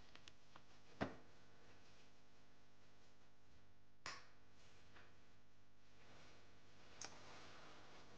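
Footsteps thud softly on the floor.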